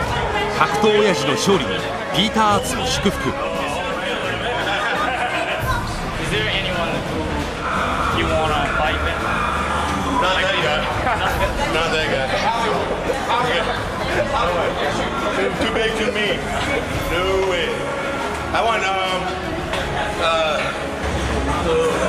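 A middle-aged man talks loudly and with animation, close by.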